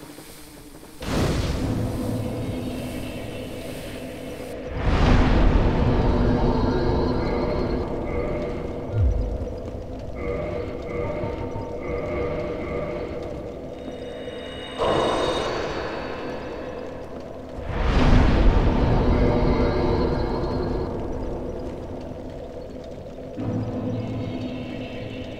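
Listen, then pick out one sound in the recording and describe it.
A fire crackles steadily.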